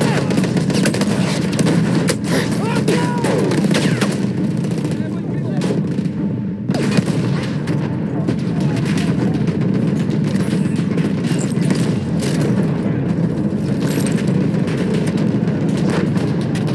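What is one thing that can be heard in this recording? A low rumble of battle drones steadily.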